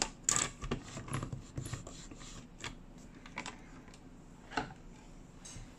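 A hard plastic tool clicks and knocks against a tabletop.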